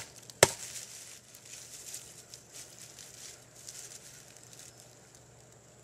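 Dry leaves rustle as a man moves on the ground.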